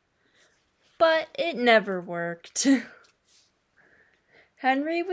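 A young woman reads aloud expressively, close to a microphone.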